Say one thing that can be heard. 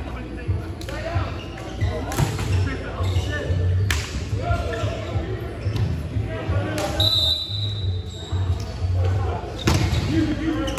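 Sneakers squeak on the wooden floor.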